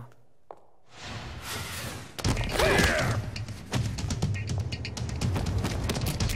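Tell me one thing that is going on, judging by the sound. Heavy blows and thuds land in a scuffle.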